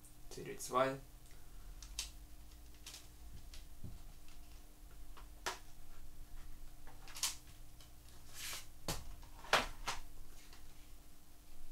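Plastic cases click and tap as they are handled.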